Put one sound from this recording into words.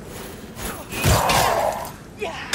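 A sword clashes in a fight.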